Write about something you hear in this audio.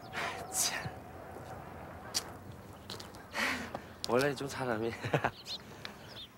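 A young man talks cheerfully and laughs.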